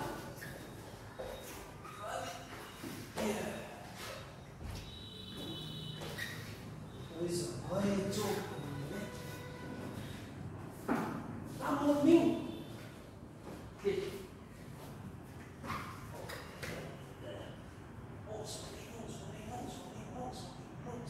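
A woman instructor speaks calmly in a large echoing room.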